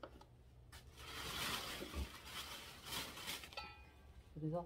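A knife scrapes dry roots with a rough rasping sound.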